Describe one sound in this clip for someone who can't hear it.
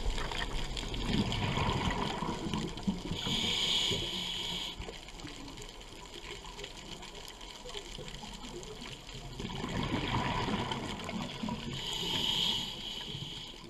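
Water murmurs with a low, steady underwater rumble.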